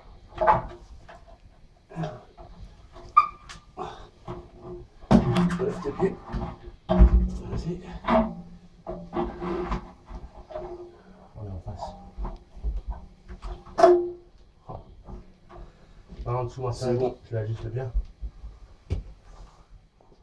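A large metal tank bumps and scrapes against a wall.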